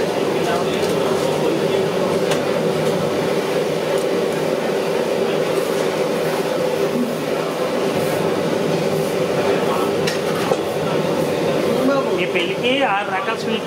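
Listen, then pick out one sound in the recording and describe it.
A metal ladle scrapes and clinks against a pan.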